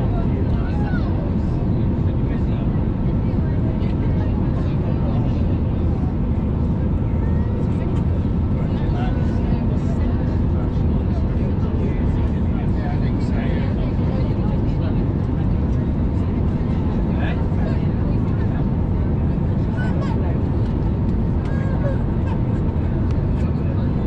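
A jet airliner's engines roar with a steady low rumble, heard from inside the cabin.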